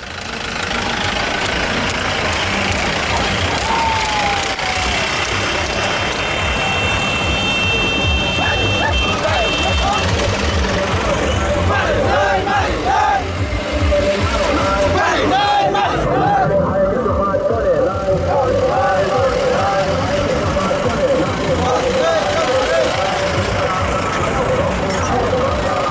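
Truck engines rumble as a convoy drives past outdoors.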